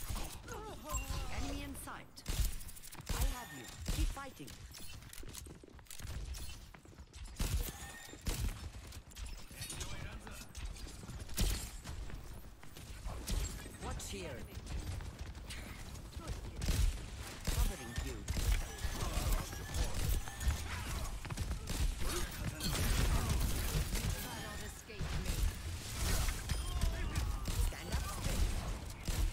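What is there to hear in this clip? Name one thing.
Game gunfire crackles in rapid bursts.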